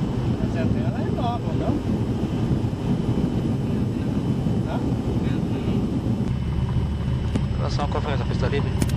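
Tyres rumble over a dirt runway.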